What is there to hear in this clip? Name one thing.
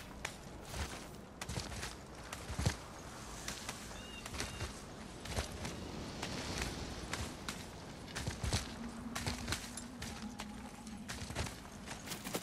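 Hands grip and scrape on rock while climbing.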